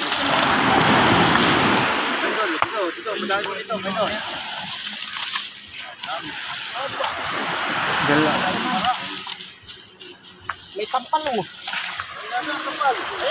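A fishing net rustles as it is dragged over the ground.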